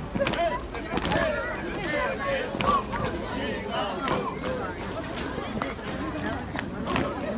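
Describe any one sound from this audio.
Dancers stamp their feet on the ground.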